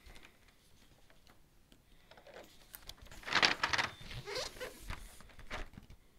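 A cardboard box scrapes and slides against another box.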